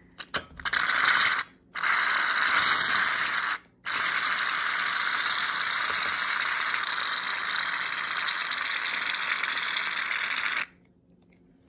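Aerosol cans hiss loudly as cream sprays out in bursts.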